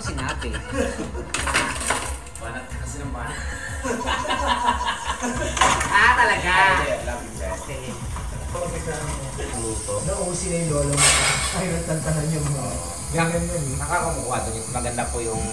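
Dishes clatter in a sink.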